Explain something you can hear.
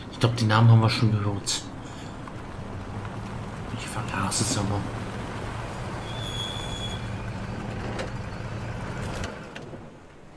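A truck engine rumbles as the truck rolls up and stops.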